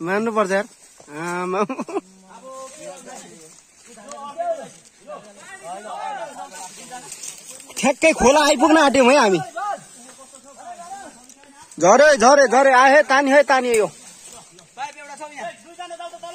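Men talk loudly and call out nearby.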